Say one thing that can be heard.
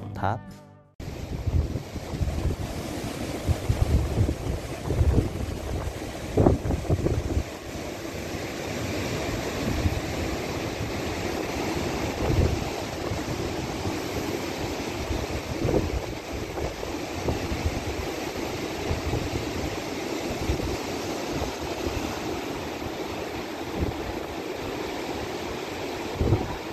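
Waves break and wash against rocks below.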